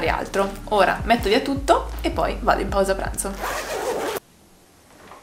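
A young woman talks close to a microphone with animation.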